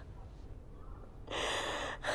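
A middle-aged man sobs close by.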